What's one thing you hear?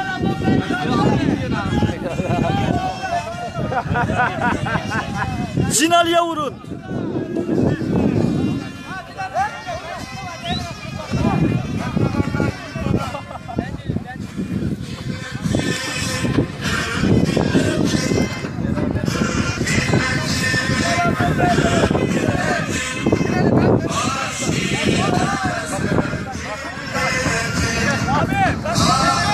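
A crowd of men talk and shout nearby outdoors.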